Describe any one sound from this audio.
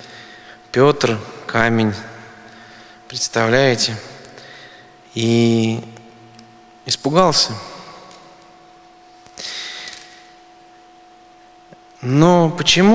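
A middle-aged man chants in short sung phrases through a microphone, echoing in a large reverberant hall.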